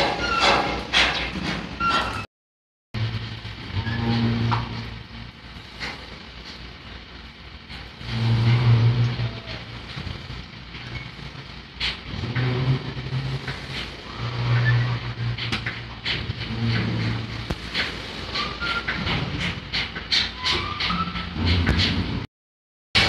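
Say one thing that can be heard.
A crawler crane's engine rumbles steadily nearby.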